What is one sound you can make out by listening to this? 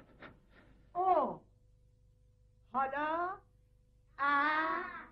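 A woman speaks loudly and with animation.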